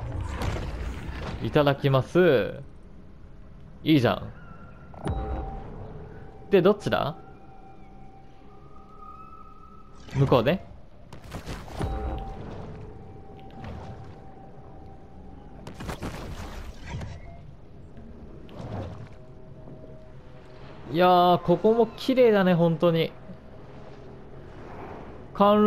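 Water rumbles and gurgles underwater.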